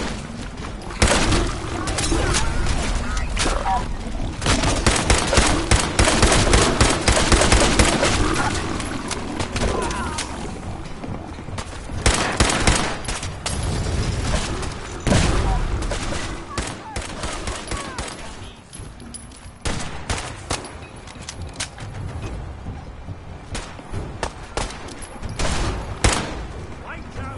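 A rifle fires repeated loud shots.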